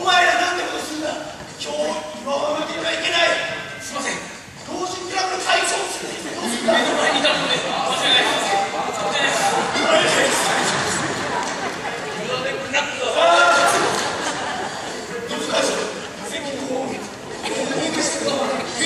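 Men speak loudly and with animation in a large echoing hall.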